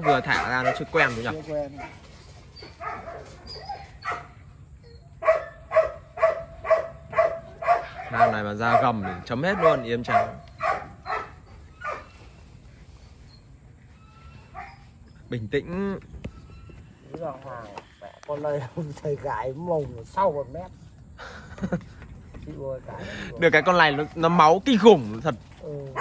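Two dogs growl and snarl as they play-fight.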